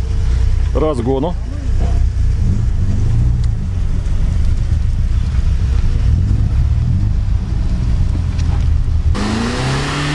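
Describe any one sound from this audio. Tyres spin and churn through thick mud.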